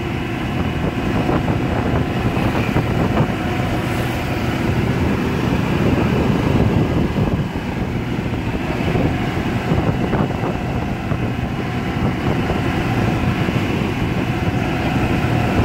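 Tyres rumble steadily on a paved road.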